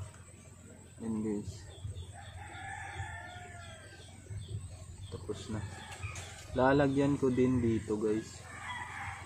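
A young man speaks calmly close by.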